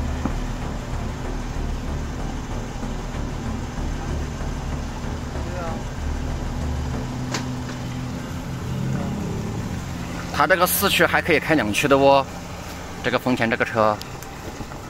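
An engine rumbles low and steady.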